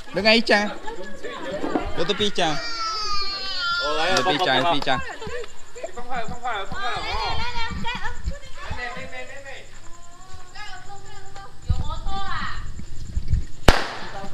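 Young children shout and squeal excitedly close by.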